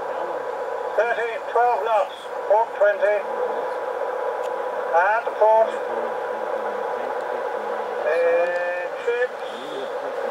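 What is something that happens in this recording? An elderly man talks calmly nearby.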